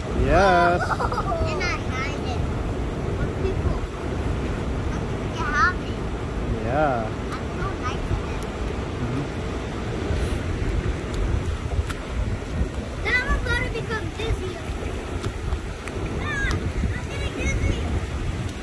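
A young girl talks and squeals playfully nearby.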